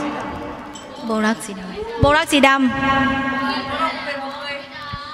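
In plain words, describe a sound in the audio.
A man sings into a microphone over a loudspeaker.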